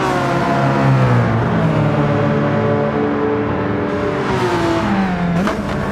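A racing car engine roars loudly, its pitch falling and rising.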